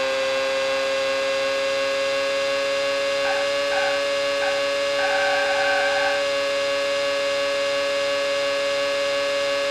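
A racing car engine whines at a steady high pitch.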